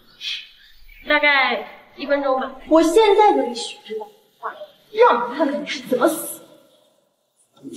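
A second young woman speaks sharply and with animation, close by.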